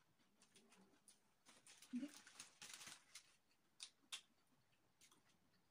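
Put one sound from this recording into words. A woman crunches on crispy fried chicken at close range.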